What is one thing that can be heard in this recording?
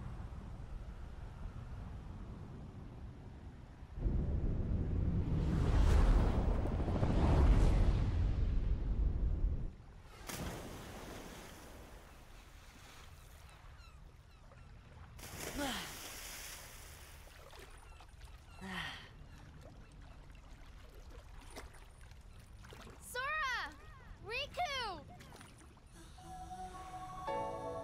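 Gentle waves wash steadily over open water.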